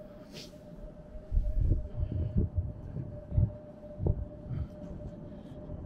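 Gusts of wind buffet outdoors.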